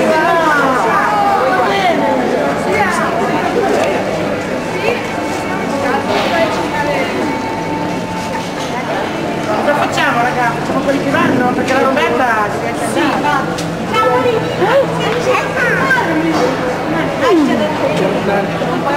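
A crowd murmurs in a busy echoing hall.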